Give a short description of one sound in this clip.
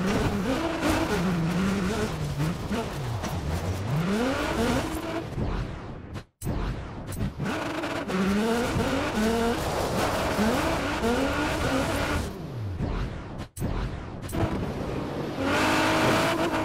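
Tyres crunch and rumble over gravel.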